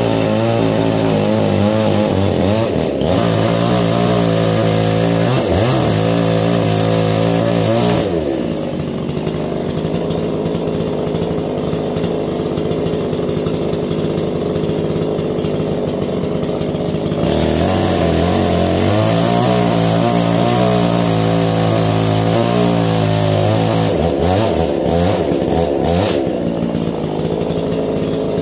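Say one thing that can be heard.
A chainsaw engine roars loudly while cutting wood, then drops to an idle and revs again.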